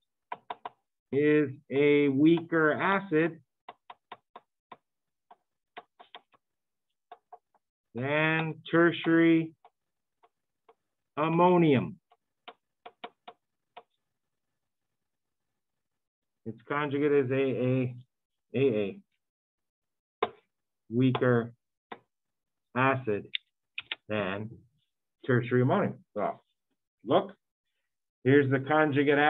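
A man lectures calmly through a microphone, pausing between phrases.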